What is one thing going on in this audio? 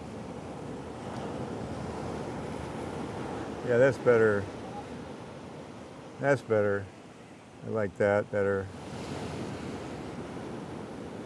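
Waves crash and wash against rocks nearby.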